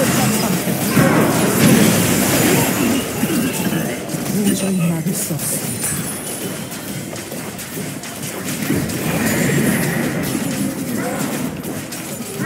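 Video game spell effects crackle and clash in a busy fight.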